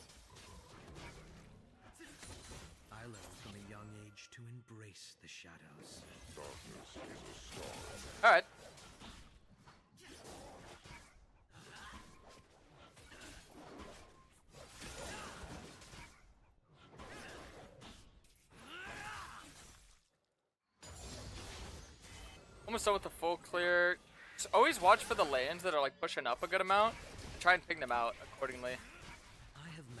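Game sound effects of spells and sword hits play throughout.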